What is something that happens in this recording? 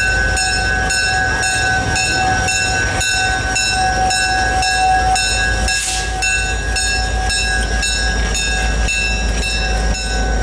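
A diesel locomotive engine rumbles steadily as the train rolls slowly closer.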